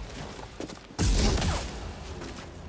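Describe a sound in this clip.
A lightsaber clashes with a loud burst of sparks.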